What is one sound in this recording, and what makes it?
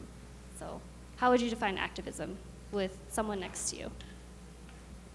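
A young woman speaks into a microphone through loudspeakers in a large echoing hall.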